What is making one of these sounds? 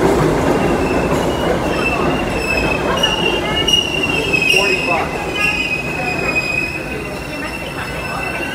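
Subway train brakes squeal in high, wavering tones as the train slows.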